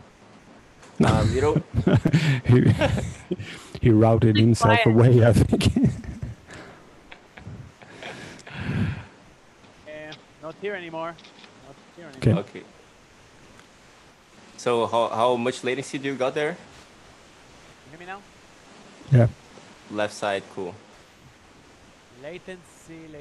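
Several men talk and laugh over an online call.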